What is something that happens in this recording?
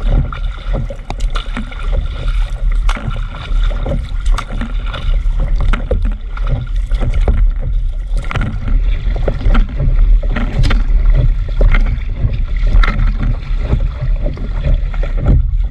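Water splashes and slaps against the hull of a fast-moving boat.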